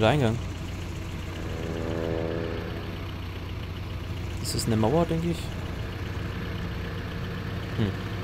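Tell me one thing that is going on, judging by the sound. A jeep engine hums steadily.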